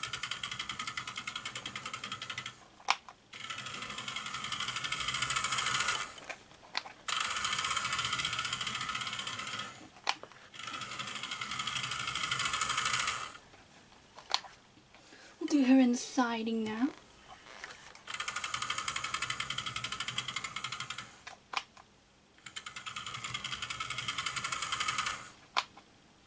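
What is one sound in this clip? A toy train's wheels clack over rail joints.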